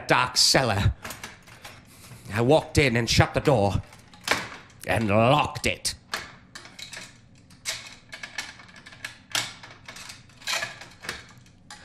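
Wooden parts knock and rattle as they are handled.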